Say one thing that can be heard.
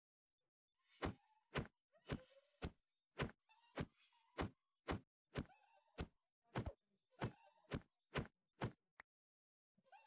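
A hand strikes stone in a quick run of sharp knocks.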